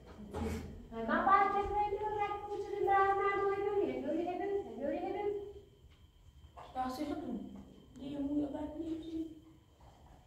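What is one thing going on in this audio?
An elderly woman talks with animation nearby.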